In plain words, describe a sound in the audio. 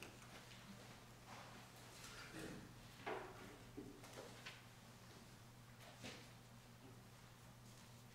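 Guitars knock and bump as they are set down on stands.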